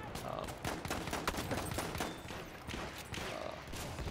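Gunshots crack sharply in quick succession.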